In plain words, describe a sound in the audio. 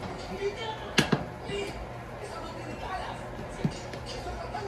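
A metal ladle knocks against a pot.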